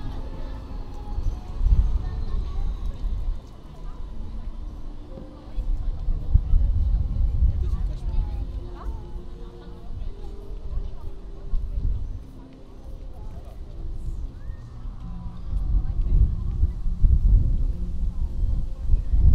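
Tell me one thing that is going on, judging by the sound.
People chatter in the distance.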